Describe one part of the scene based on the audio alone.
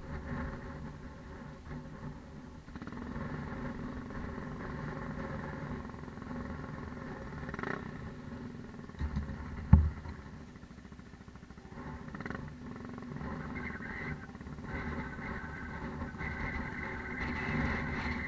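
A motorbike engine idles close by with a steady rumble.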